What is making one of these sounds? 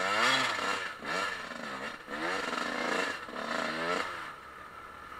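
A single-cylinder four-stroke dual-sport motorcycle revs up and down.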